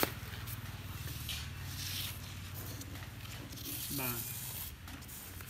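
Sheets of paper rustle as they are handled.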